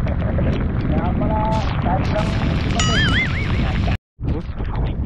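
Rain falls on the sea.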